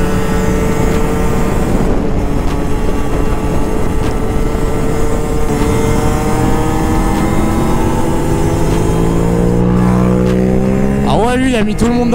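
A motorcycle engine drones steadily close by, rising in pitch as it speeds up.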